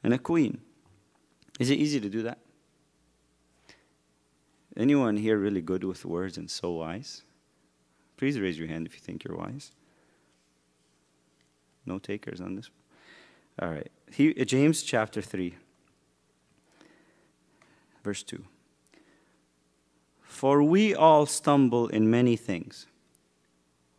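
A man speaks calmly into a microphone, pausing often.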